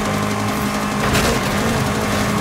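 A car crashes through a wooden fence with a crunch.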